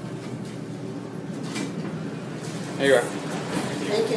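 An elevator door slides open.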